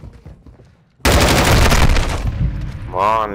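A rifle fires a rapid burst of loud gunshots.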